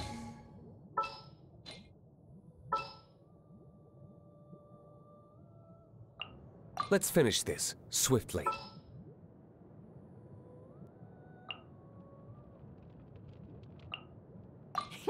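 Game menu clicks chime in short, sharp ticks.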